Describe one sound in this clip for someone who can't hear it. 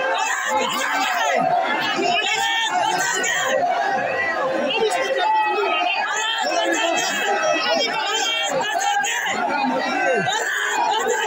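A large outdoor crowd of men cheers and shouts excitedly close by.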